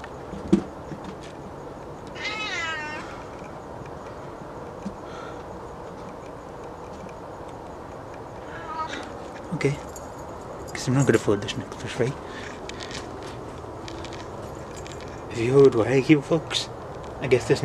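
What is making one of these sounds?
A young man speaks close by, calmly.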